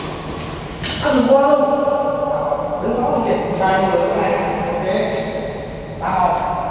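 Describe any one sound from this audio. Men shout and call out in an echoing hall.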